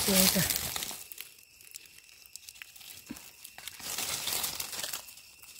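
Dry leaves rustle and crackle as a hand digs at the ground.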